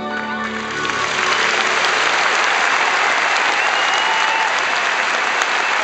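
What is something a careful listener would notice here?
A large audience applauds and cheers loudly.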